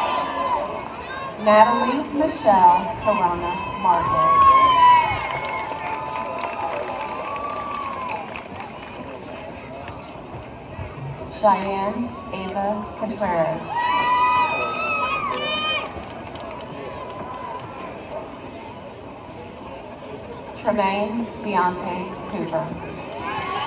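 A man reads out names through a loudspeaker outdoors, with echo.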